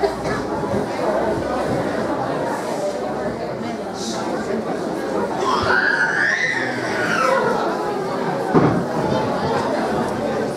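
A crowd of men and women chatters in an echoing hall.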